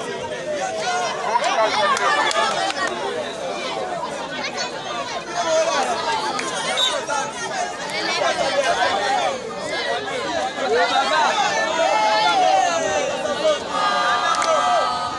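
A large crowd outdoors shouts and cheers loudly.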